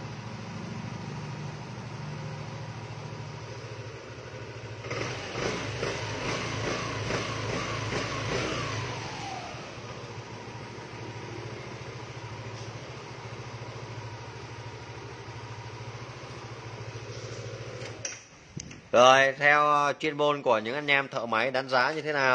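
A car engine idles with a steady low hum.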